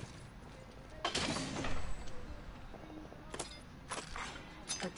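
Metal gear clatters as items are picked up in quick bursts.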